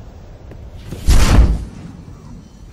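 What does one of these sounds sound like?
An explosion booms with a deep blast.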